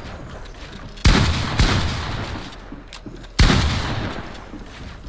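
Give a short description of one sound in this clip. Loud gunshots boom, each followed by a rumbling echo.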